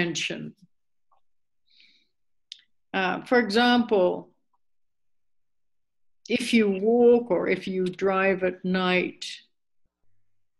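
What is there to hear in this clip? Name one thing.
An elderly woman speaks calmly and close by, in short phrases with pauses.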